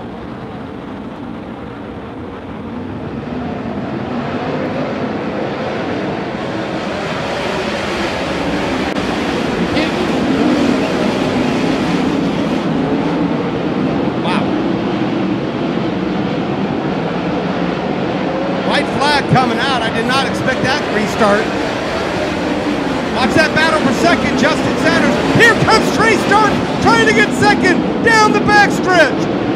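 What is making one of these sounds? Race car engines roar around a dirt track.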